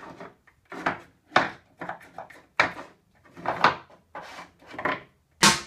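A cat paws at small bottles, making them knock and rattle.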